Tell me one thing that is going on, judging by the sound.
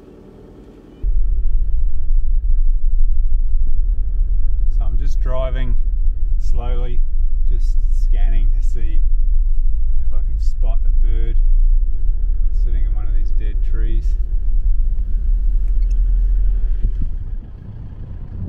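A car engine rumbles steadily from inside the cab.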